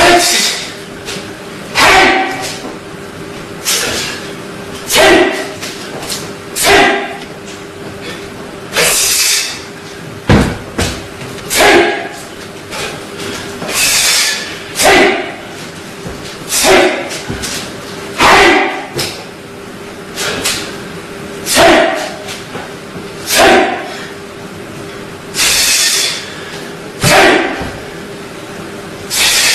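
A man exhales forcefully in sharp bursts.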